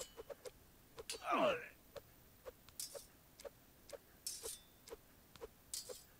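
Swords clash and strike in a brief fight.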